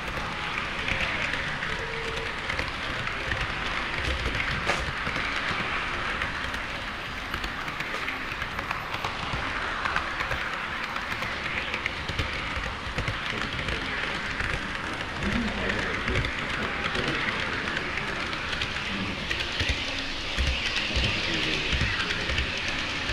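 Model train wheels clatter and rumble steadily along the track close by.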